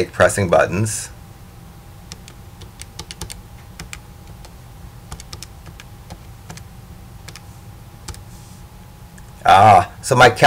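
Calculator buttons click softly as they are pressed.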